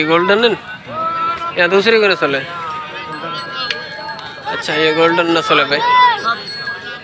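A crowd of men chatters in the background outdoors.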